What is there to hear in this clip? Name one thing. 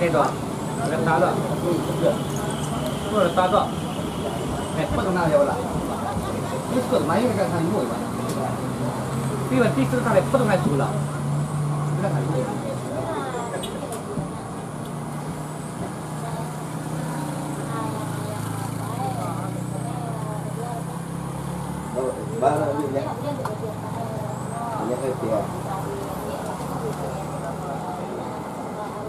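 A motorcycle engine putters past on the road.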